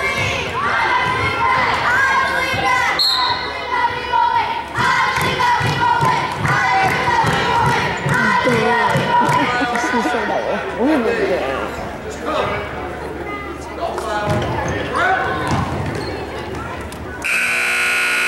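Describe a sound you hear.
A group of young girls chant and cheer in an echoing gym.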